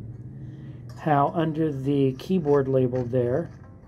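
A finger plucks zither strings in a quick run of notes.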